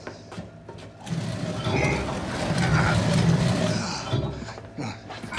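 Steam hisses from a boiling pot.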